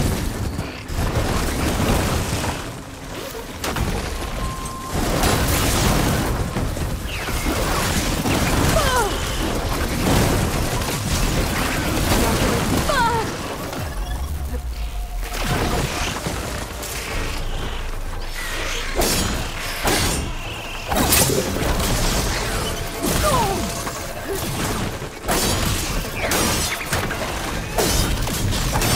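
Weapons clash and strike a mechanical beast in a fight.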